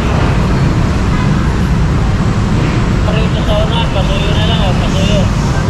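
Motorcycle engines idle nearby.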